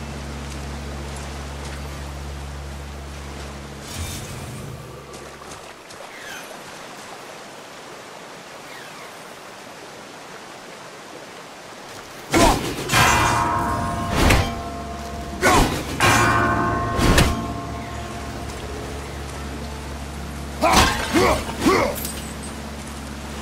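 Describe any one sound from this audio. A waterfall rushes in the distance.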